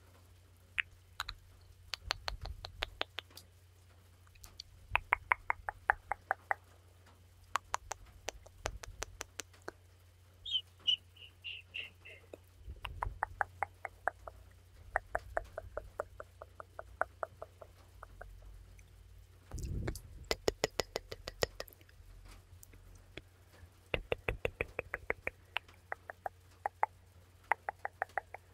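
Long fingernails tap and click rapidly right against a microphone.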